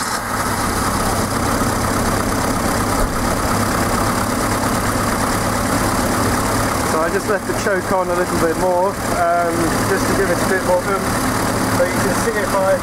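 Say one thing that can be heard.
A car engine idles with a steady, noisy rumble.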